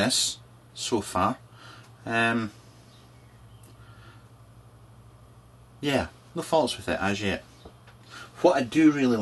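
A man talks calmly and close up, with pauses.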